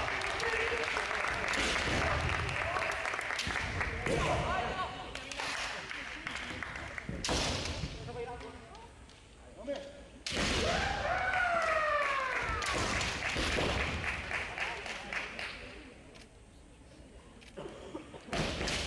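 Bare feet stamp on a wooden floor.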